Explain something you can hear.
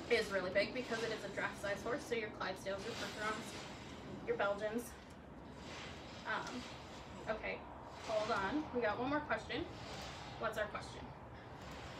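A young woman talks calmly and clearly, close by.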